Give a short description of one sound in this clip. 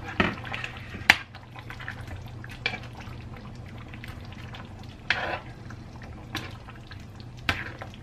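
A metal spatula scrapes and clicks against a pan.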